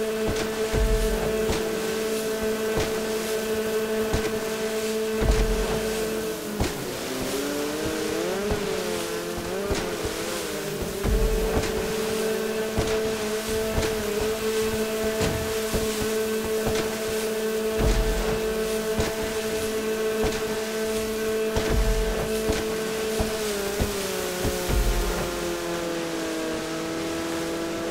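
A jet ski engine drones at speed, its pitch rising and falling through turns.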